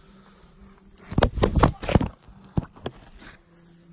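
A hand rubs loudly against the microphone.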